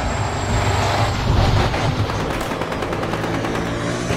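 A heavy truck engine rumbles as it drives past.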